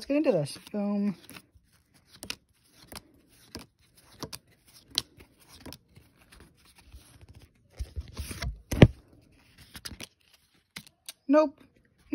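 Trading cards slap and rustle as a hand flips through them.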